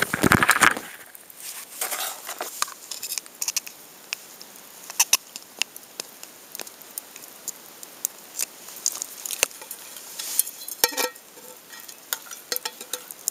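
Dry grass rustles as a hand moves through it.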